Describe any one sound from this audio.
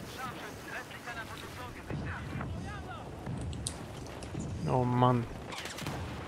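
Water splashes and gurgles underwater, muffled.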